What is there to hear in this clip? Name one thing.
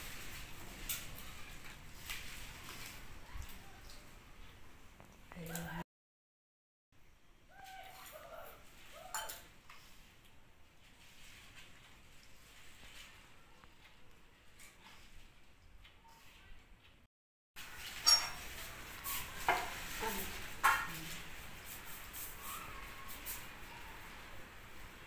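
Hands rub and knead flour in a metal bowl.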